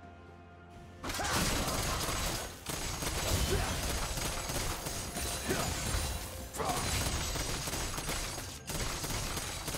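Magic spells blast and crackle in a fight.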